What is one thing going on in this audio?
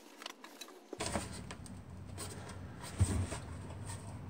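A metal cover scrapes and rattles as it is pulled off a box.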